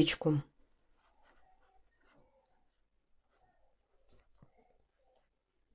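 A crochet hook pulls softly through thick cotton yarn with a faint rustle.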